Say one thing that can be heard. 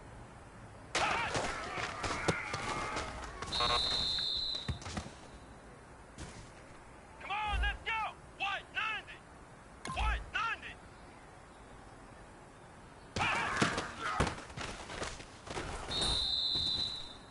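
Football players crash together in a tackle.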